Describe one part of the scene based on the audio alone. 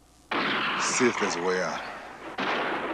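A man speaks tensely nearby.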